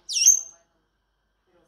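A parrot gives a sharp, high whistle.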